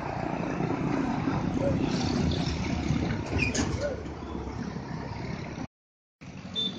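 A tanker truck's diesel engine rumbles as it drives past close by.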